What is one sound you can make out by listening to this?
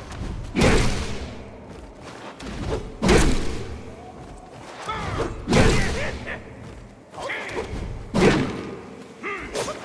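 Loud fiery blasts boom and roar again and again.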